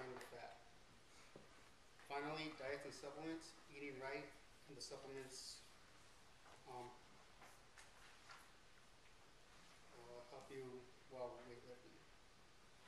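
A young man speaks calmly, with pauses.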